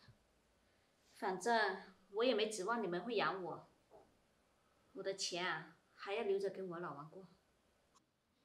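A young woman answers calmly up close.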